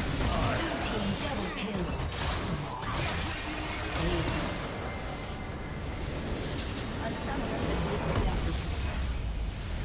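Game spell effects and weapon hits clash and explode rapidly.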